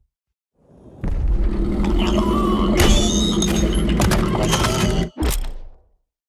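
A heavy mechanism whirs and clanks.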